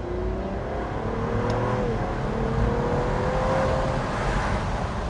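A car engine hums and revs as it accelerates.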